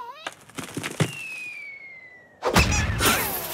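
A falling object whistles as it drops.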